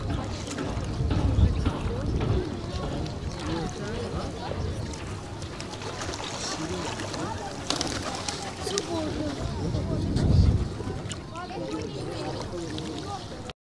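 Birds call and chirp nearby.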